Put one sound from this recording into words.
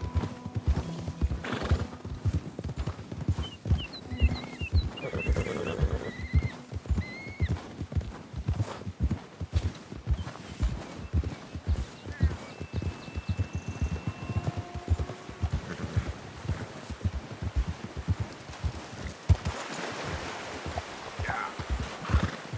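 A horse's hooves thud steadily through snow.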